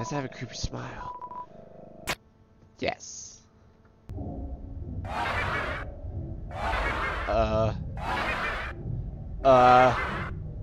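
Game sound effects chirp and blip.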